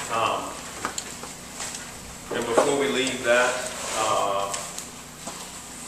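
A middle-aged man speaks calmly into a microphone, with a slight room echo.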